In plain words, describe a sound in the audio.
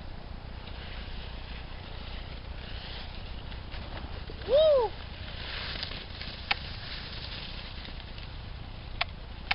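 Skis slide and scrape over snow.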